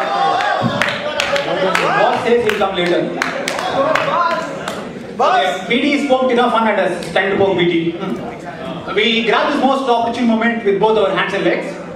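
A young man sings loudly into a microphone through loudspeakers.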